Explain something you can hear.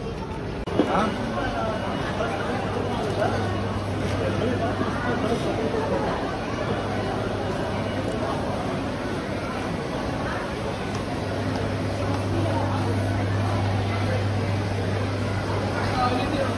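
A crowd of shoppers murmurs in a large, busy indoor hall.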